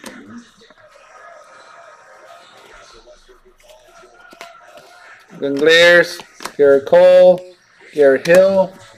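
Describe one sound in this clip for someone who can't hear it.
Trading cards rustle softly as they are handled.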